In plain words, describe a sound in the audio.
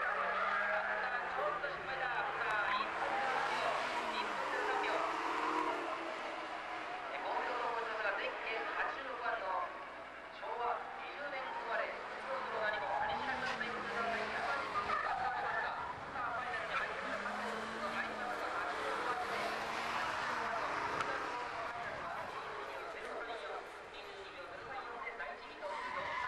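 Tyres squeal on asphalt.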